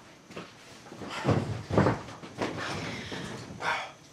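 A bedsheet rustles as it is pulled over a bed.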